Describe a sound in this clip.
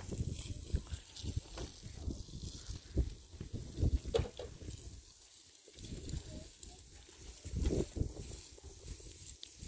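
Water sprays from a hose against a block wall.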